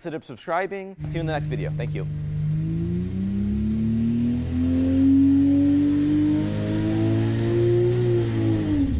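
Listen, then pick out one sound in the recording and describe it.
An engine roars and its revs climb steadily before dropping away at the end.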